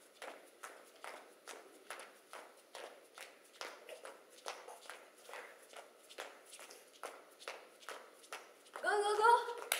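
Feet stomp and tap on a hard floor in a quick, steady rhythm.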